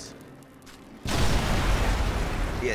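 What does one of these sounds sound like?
A loud explosion booms suddenly.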